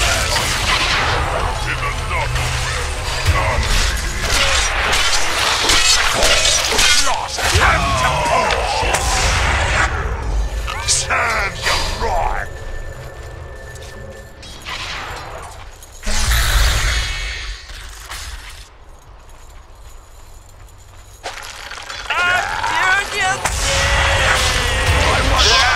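Blades and blows clash and thud.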